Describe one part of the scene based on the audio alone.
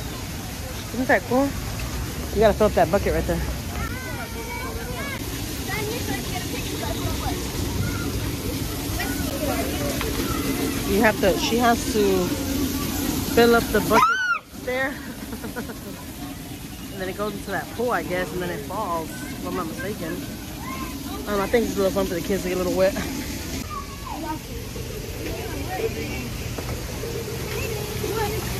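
Children shout and chatter excitedly nearby.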